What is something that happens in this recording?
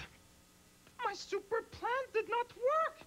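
A second man answers in a high, excited cartoon voice.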